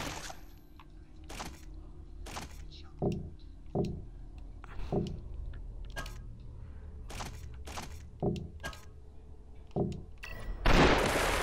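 Soft clicks and whooshes sound as menu selections change.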